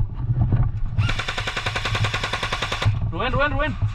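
An airsoft rifle fires in a rapid burst.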